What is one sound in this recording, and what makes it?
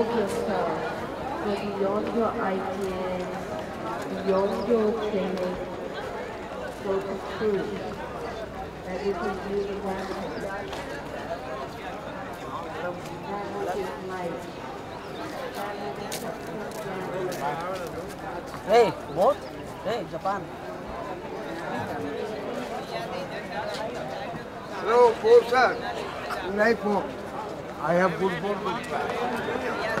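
A crowd of men and women chatter outdoors, some voices close by.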